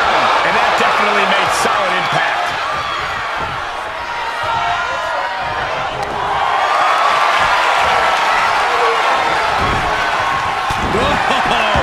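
A large crowd cheers and shouts steadily in an echoing arena.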